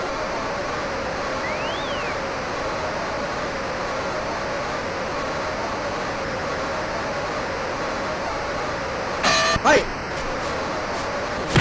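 A crowd roars steadily in a large arena.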